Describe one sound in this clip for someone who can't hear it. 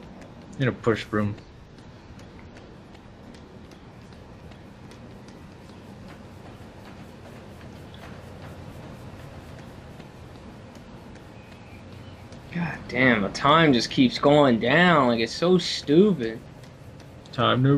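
Quick footsteps run across a hard floor.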